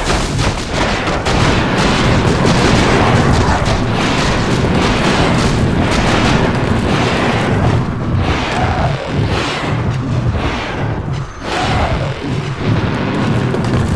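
Fiery magic blasts crackle and burst in a battle.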